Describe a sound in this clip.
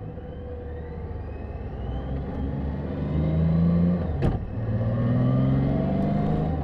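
A motorcycle engine hums steadily and rises in pitch as the bike speeds up.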